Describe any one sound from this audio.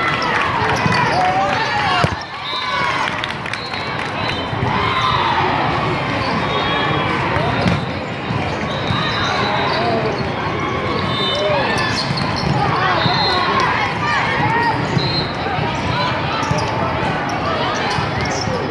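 Many voices chatter and shout throughout a large echoing hall.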